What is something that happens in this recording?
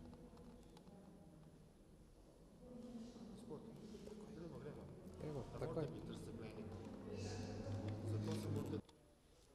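Footsteps climb a stone staircase in a large echoing hall.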